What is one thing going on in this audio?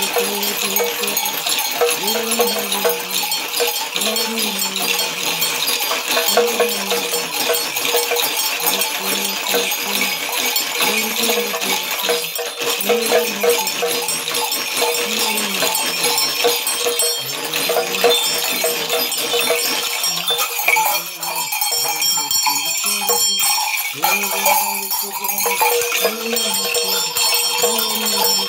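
A man shakes rattles in a quick, steady rhythm.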